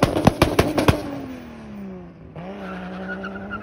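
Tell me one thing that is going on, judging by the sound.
A Toyota Supra's inline-six engine drones as the car pulls away into the distance.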